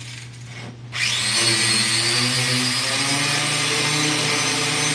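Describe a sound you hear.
A small power grinder whirs loudly and grinds against metal.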